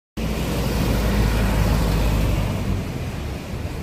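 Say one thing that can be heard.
A truck drives past close by with a low engine rumble that fades away.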